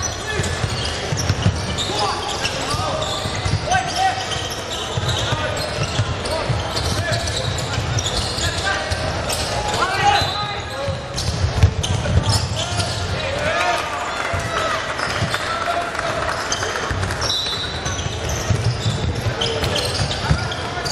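A crowd murmurs and calls out in a large echoing hall.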